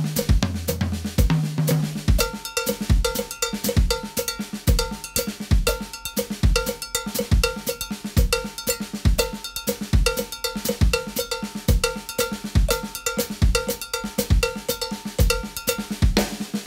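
A drummer plays a steady beat on a drum kit.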